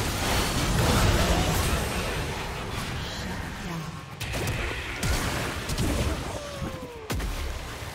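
Spell blasts and hits crackle and boom in a fast fight.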